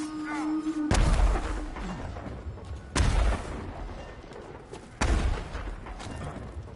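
Heavy thuds land as a warrior jumps down.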